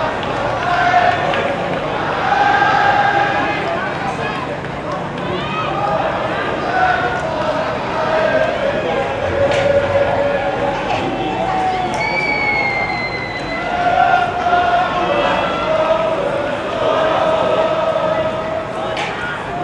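A large stadium crowd chants and sings loudly in unison outdoors.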